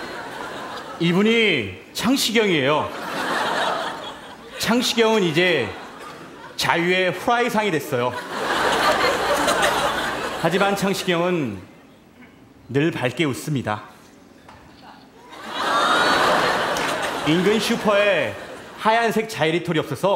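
A man speaks in a loud, exaggerated sing-song voice through a microphone.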